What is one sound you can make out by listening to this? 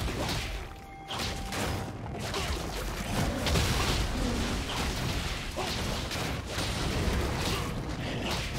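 Spell effects whoosh and crackle in a game battle.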